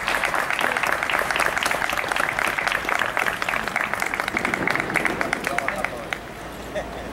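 A grand piano plays a fast, lively melody outdoors.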